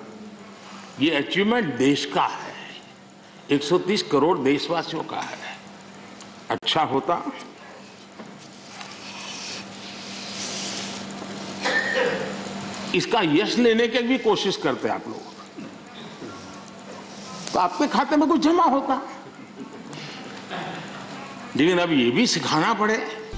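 An elderly man speaks with emphasis into a microphone in a large echoing hall.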